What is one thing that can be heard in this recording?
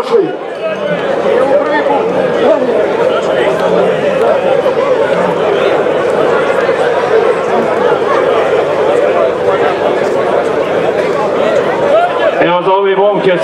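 A crowd of men talk and shout outdoors.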